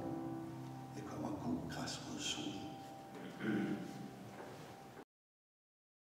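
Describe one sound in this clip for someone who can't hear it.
An electric piano plays.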